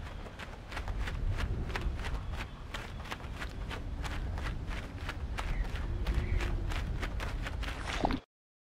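A bird's wings flap rapidly and repeatedly.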